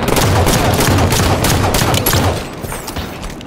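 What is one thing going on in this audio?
Rapid gunfire rattles loudly in quick bursts.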